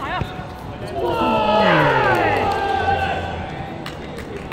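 A young man cheers after a goal.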